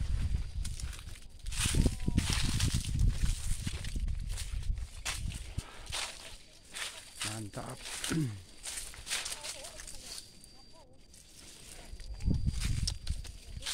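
Wind gusts outdoors and leaves rustle in the breeze.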